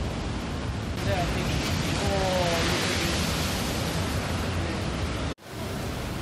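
Storm waves crash against a seawall.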